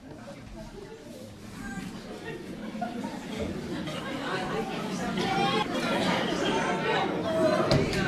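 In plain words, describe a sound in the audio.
A sack scrapes and drags across a wooden floor.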